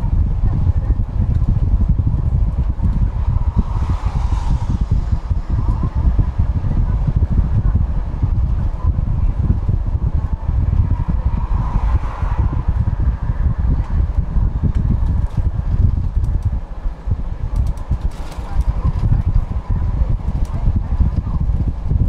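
Tyres roar on the road surface.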